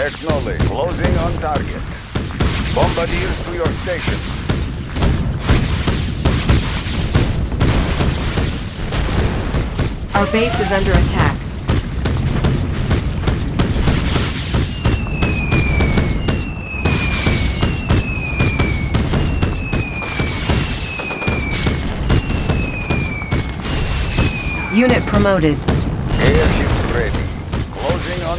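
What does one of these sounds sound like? Explosions boom and weapons fire in a battle.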